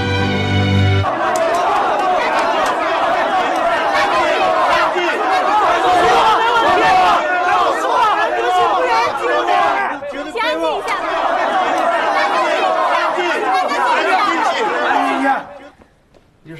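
A large crowd of men and women shouts and clamours.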